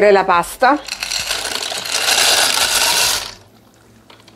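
Dry pasta pours and rattles into a metal bowl.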